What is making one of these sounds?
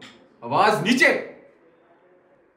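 A man shouts loudly and briefly nearby.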